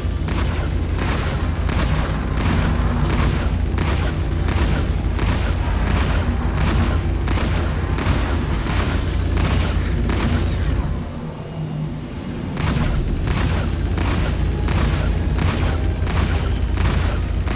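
A spacecraft engine hums with a deep, steady drone.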